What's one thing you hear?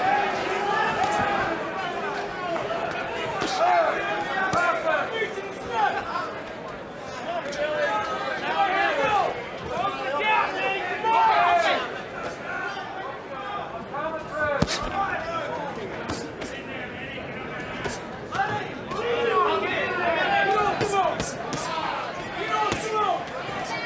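Gloved punches land with sharp thuds.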